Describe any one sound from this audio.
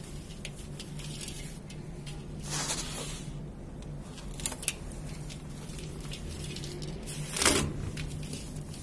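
Dry sand pours and patters into a metal bowl.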